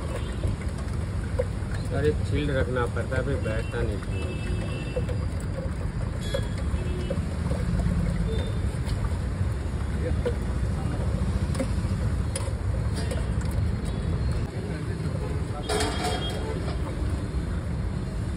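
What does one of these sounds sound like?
A metal ladle clinks and scrapes inside a metal pot.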